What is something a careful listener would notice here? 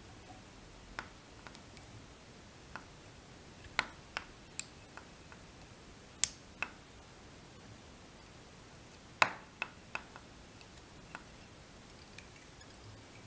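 Fingers handle thread with sharp little clicks and taps close by.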